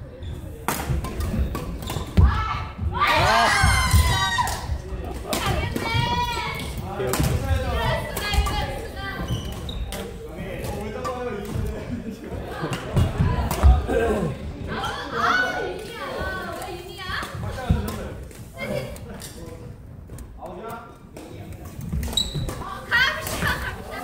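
Shuttlecocks are struck with sharp pops of badminton rackets.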